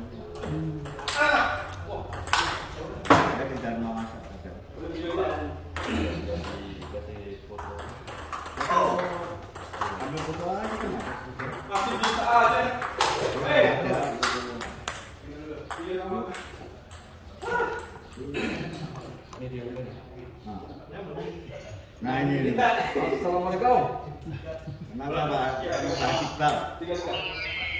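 Men talk casually nearby in a room with a slight echo.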